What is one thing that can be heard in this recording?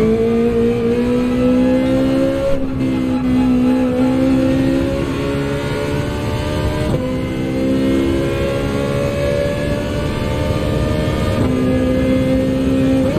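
A racing car engine roars and climbs steadily in pitch, dipping briefly at each gear change.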